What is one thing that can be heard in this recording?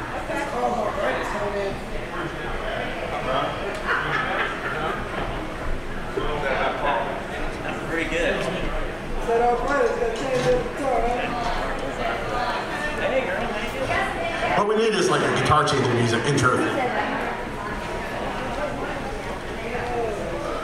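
Men talk casually nearby in an echoing hall.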